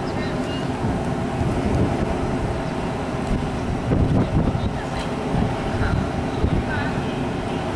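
A train rumbles slowly into a station.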